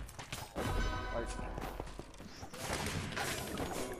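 Magic blasts crackle and burst loudly.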